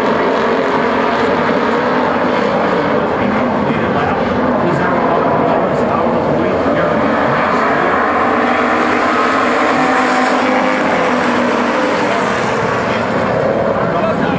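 Several race car engines roar loudly and continuously.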